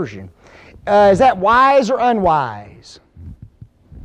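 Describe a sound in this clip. A man speaks loudly and with animation through a microphone in an echoing hall.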